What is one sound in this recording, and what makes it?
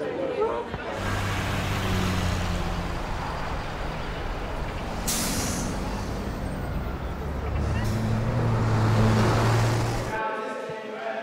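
A bus engine rumbles steadily nearby.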